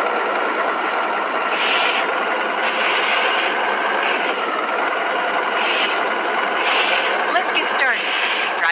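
A bus engine drones steadily while driving.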